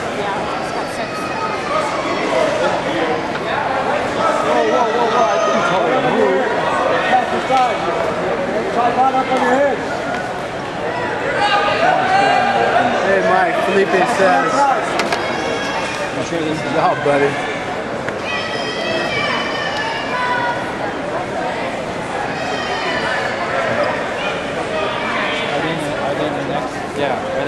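A crowd of spectators talks and shouts all around in a large echoing hall.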